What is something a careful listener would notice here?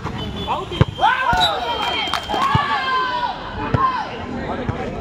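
Young men cheer loudly after a point.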